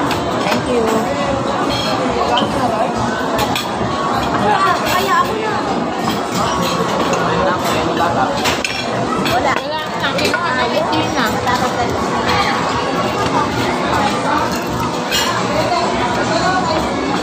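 Cutlery clinks against plates now and then.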